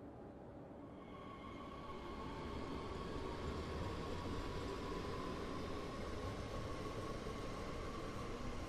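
Another train rumbles past close by, with a whining tone that grows louder.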